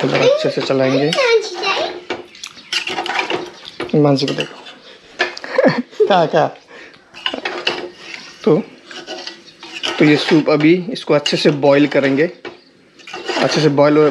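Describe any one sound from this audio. A metal ladle stirs and scrapes inside a pot of liquid.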